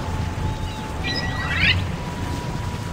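A bright chime rings out briefly.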